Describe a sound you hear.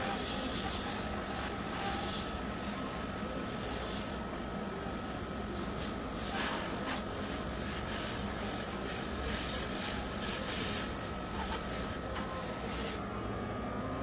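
An airbrush hisses softly as it sprays paint.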